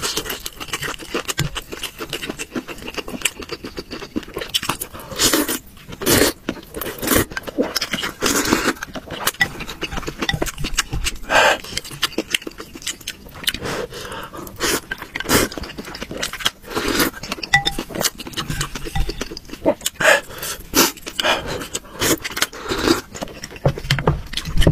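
A young man slurps noodles loudly and close up.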